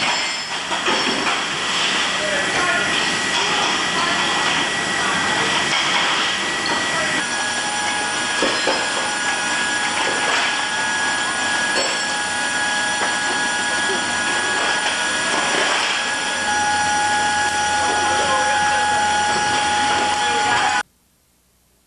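A loud aircraft engine drones steadily.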